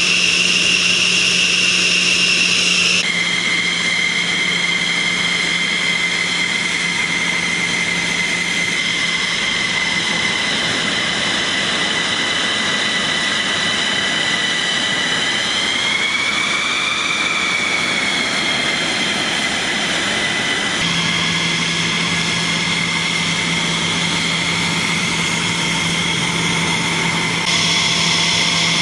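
A jet engine whines loudly and steadily at close range.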